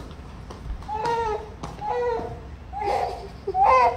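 A toddler babbles and squeals in a high voice.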